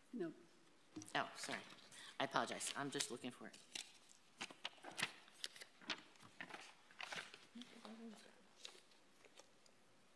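Paper rustles and crinkles close to a microphone.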